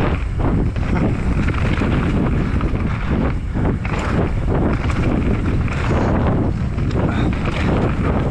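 Bike tyres rumble and crunch over a rough dirt trail.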